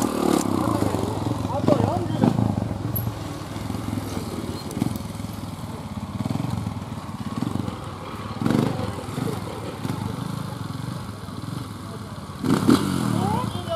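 A second motorbike engine revs farther off.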